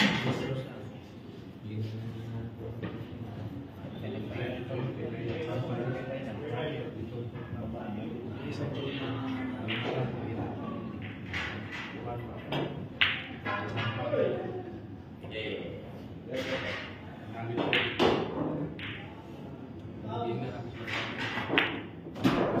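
A cue tip strikes a pool ball with a sharp click.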